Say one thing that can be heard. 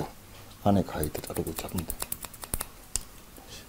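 Scissors snip rapidly through hair.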